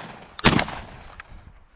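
A shotgun fires once, close by and loud.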